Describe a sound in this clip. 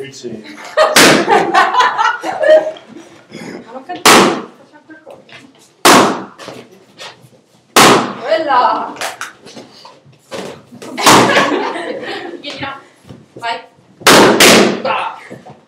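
Rubber balloons burst with sharp pops.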